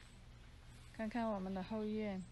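A middle-aged woman speaks close by.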